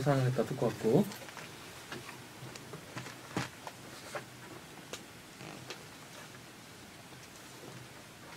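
Sheets of paper rustle.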